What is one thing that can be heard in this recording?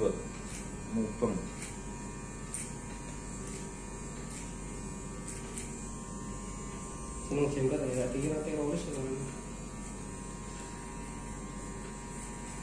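An electric hair clipper buzzes as it trims hair.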